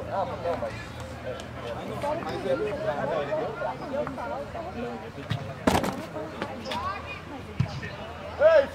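Young players shout and call out across an open field outdoors.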